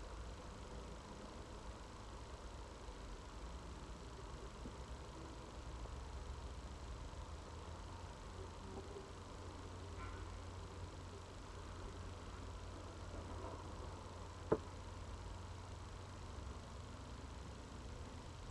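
Wooden frames knock and scrape against a wooden box.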